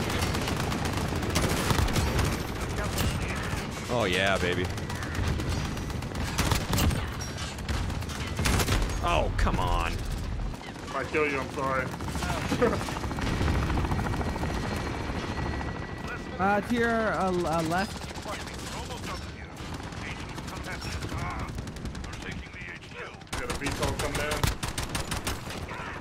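Rapid gunfire crackles and booms in bursts.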